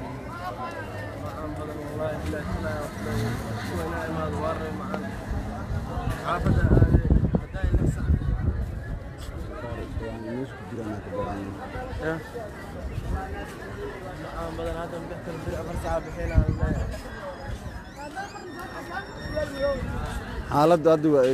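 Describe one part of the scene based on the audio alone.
A crowd of men and women talks and shouts outdoors, close by.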